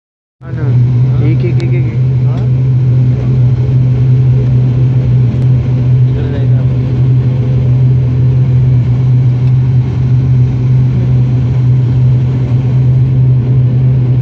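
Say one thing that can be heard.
Aircraft wheels rumble over the runway.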